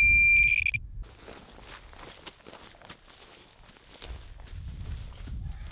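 Footsteps rustle through dry grass outdoors.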